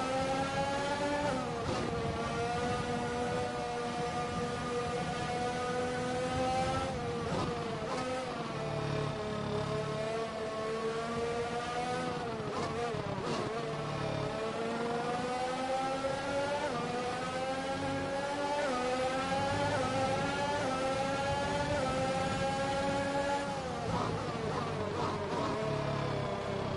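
A racing car engine whines loudly, its pitch rising as it speeds up and dropping as it shifts gears.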